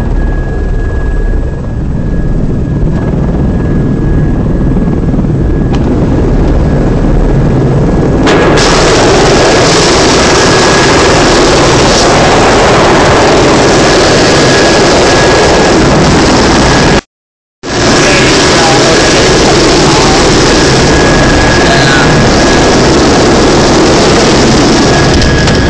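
A helicopter engine roars and whines steadily close by, growing louder partway through.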